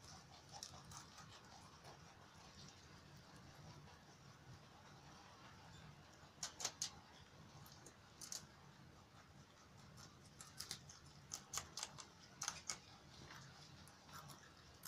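Rabbits crunch and tear at fresh leafy stems up close.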